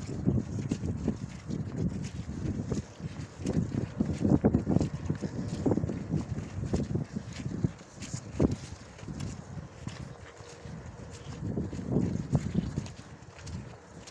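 A horse's hooves thud softly on soft muddy ground.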